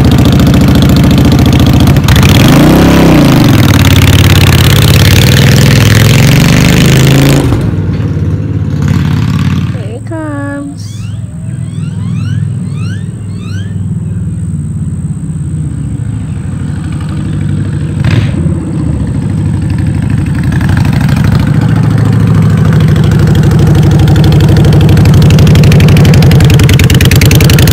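A motorcycle engine rumbles loudly close by, fades as the motorcycle rides away, then grows loud again as it comes back.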